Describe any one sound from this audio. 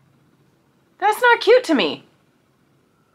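A woman speaks briefly and brightly, close to the microphone.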